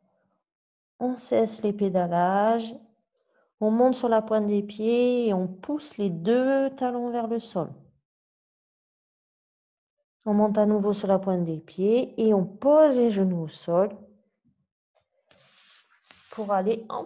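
A woman speaks calmly and clearly, close to the microphone, in short spells with pauses.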